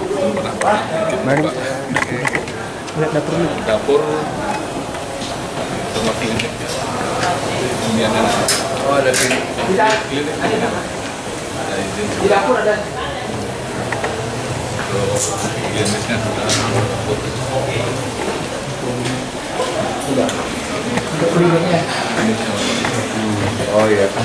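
Several men talk nearby as a group walks along.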